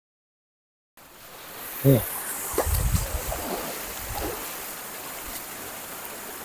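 Water trickles and splashes over stones in a shallow stream.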